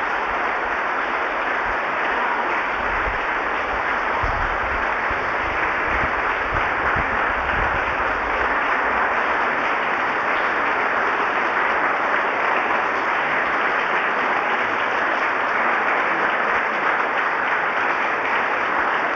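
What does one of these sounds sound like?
A large crowd applauds steadily in an echoing hall.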